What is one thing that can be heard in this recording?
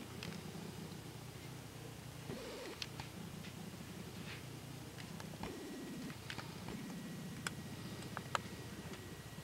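A small bird gives short, sharp chip calls close by.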